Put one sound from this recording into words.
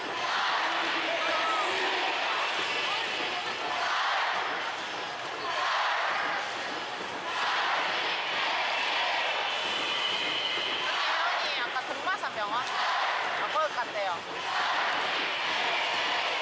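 A large stadium crowd cheers and chants loudly throughout.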